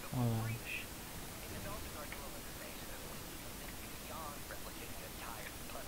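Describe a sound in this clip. A man talks calmly close to a microphone.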